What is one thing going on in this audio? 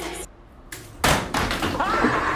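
A body thuds hard onto a floor.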